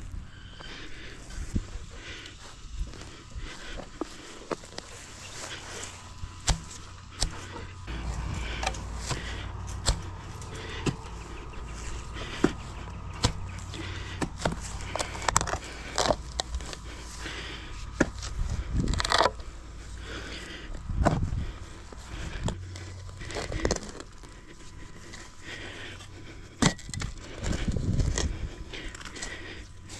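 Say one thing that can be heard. A spade digs into grassy soil with repeated crunching thuds.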